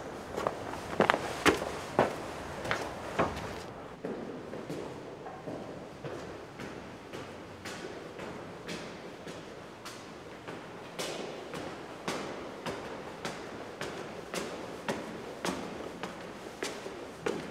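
Footsteps echo slowly on stone stairs in a large hall.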